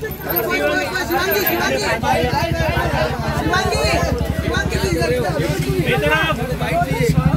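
Several people talk over one another nearby.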